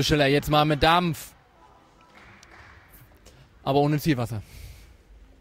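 Players shout loudly in a large echoing hall.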